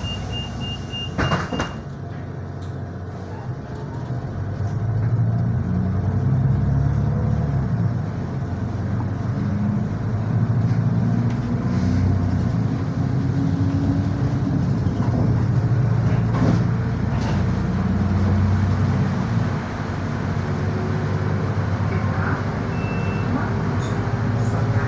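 Windscreen wipers thump across the glass.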